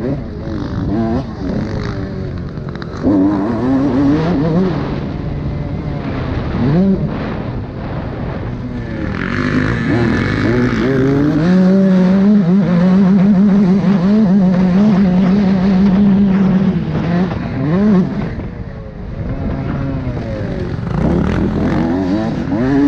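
Tyres crunch and skid over a dirt track.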